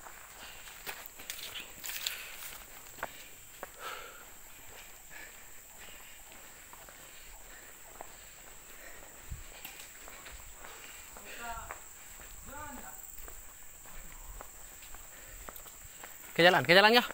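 Footsteps scuff on a concrete path.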